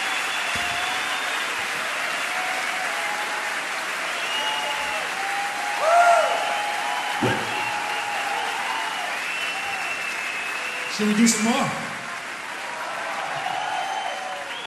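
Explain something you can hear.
People in a crowd whistle shrilly.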